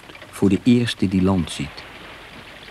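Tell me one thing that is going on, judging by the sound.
A man shouts out loudly, as if calling upward.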